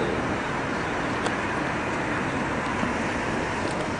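Traffic hums steadily in a city street outdoors.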